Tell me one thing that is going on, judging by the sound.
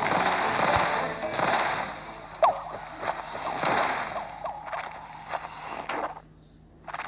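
A cartoonish explosion booms and crackles.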